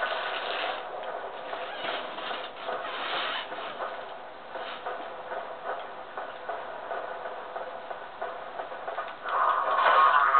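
Footsteps thud on stone, heard through a television speaker.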